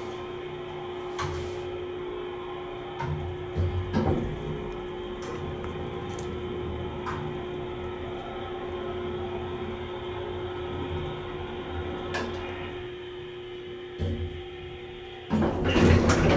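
An elevator hums steadily as it rides.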